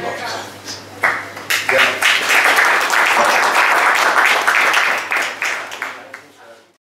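A small group of people applauds.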